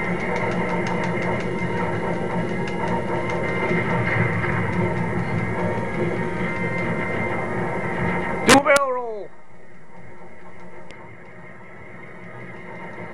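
Video game lasers fire in rapid bursts.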